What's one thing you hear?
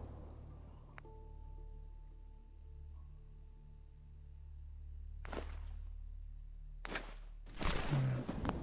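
A game menu clicks as options are chosen.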